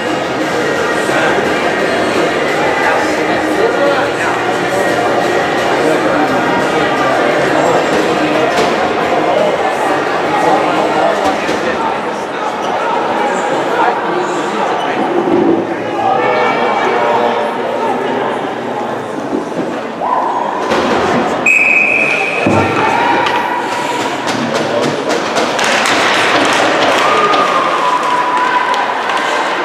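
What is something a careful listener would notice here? Young players shout to one another in an echoing rink.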